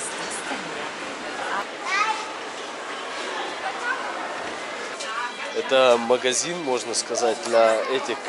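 A crowd murmurs in a large echoing indoor space.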